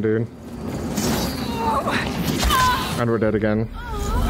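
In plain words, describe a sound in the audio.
A magic blast bursts with a deep whoosh.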